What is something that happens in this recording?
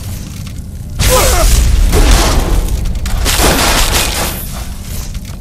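Electricity crackles in bursts.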